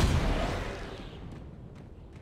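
A plasma blast bursts loudly and fades away.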